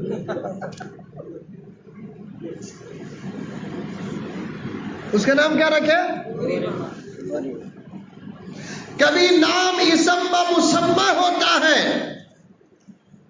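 A man preaches with passion into a microphone, his voice ringing out through loudspeakers.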